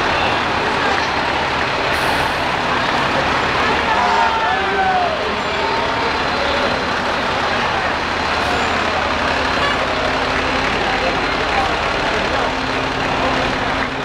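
A fire truck engine rumbles as it rolls slowly past.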